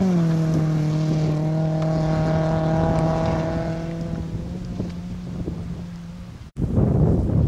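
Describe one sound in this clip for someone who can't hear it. A rally car engine drones as the car speeds away and fades into the distance.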